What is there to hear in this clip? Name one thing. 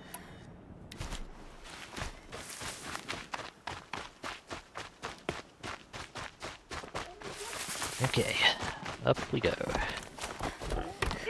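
Footsteps run quickly over grass and dirt.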